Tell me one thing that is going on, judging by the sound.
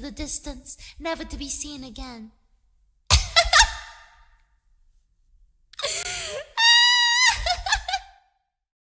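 A young woman speaks playfully and with animation, close to a microphone.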